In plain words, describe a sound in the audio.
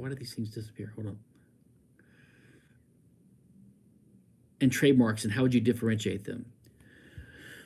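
A middle-aged man talks calmly and close to a microphone, in short bursts with pauses.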